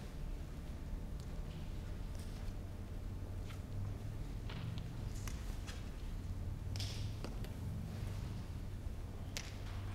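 A man speaks softly at a distance.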